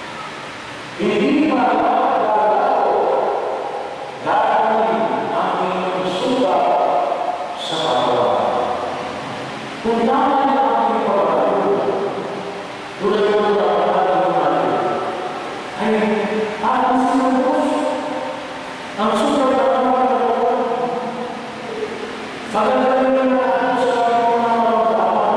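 A man chants into a microphone, echoing through a large hall.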